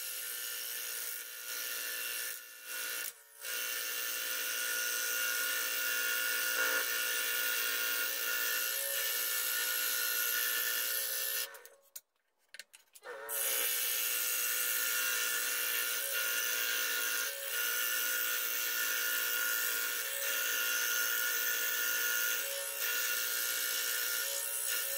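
A scroll saw runs with a steady, rapid buzzing hum.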